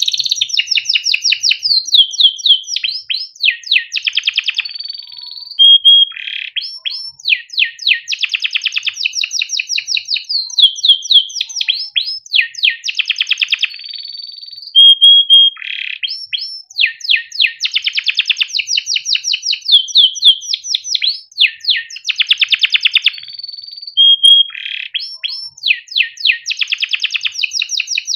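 A canary sings loudly and close by, with fast trills, chirps and rolling warbles.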